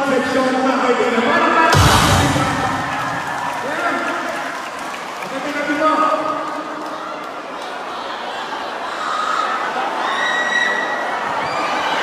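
A man speaks loudly into a microphone over loudspeakers in a large echoing hall.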